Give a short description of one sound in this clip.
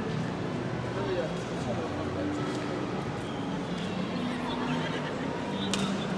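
A crowd of people murmurs and chatters in a large echoing indoor hall.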